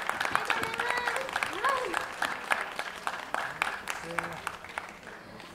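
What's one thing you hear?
A group of young girls clap their hands.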